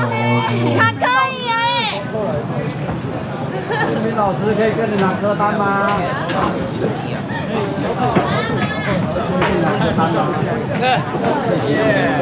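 A man talks through loudspeakers.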